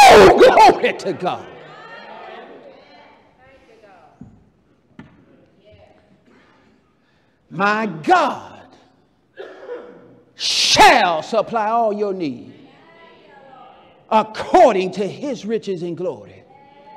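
A man preaches loudly with animation through a microphone, echoing in a large hall.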